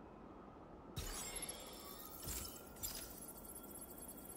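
A phone gives a short electronic chime.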